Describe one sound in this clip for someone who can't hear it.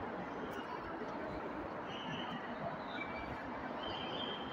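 A crowd chatters and murmurs in the distance outdoors.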